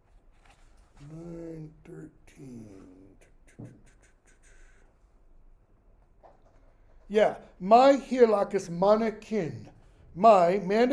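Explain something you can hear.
An older man reads aloud nearby, slowly and then with rising emphasis.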